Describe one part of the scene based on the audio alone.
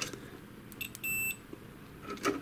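A multimeter beeps briefly.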